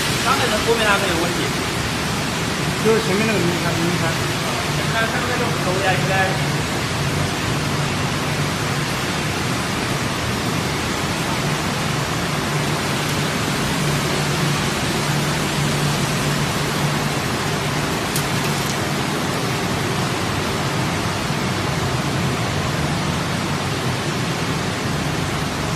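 Industrial machinery hums and rumbles steadily in a large echoing hall.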